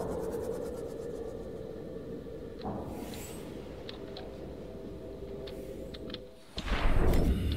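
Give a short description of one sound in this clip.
A small submarine's engine hums steadily underwater.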